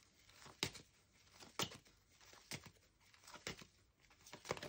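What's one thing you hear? Playing cards are laid down on a wooden table with soft taps.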